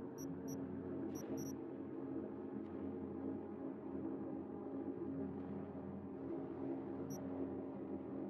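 Short electronic menu beeps sound as selections change.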